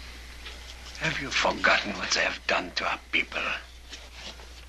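A middle-aged man speaks in a low, strained voice close by.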